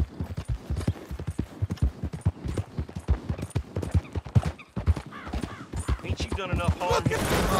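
Horse hooves thud steadily on a dirt track.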